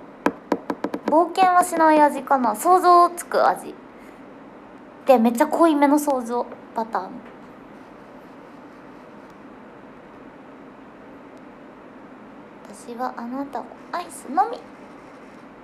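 A young woman speaks softly and casually, close to a microphone.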